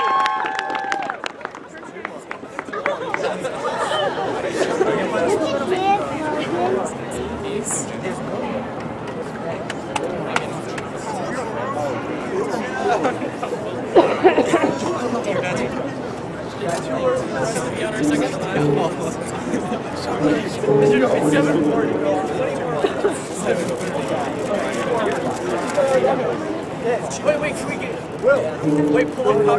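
A band plays loudly outdoors with horns and saxophones.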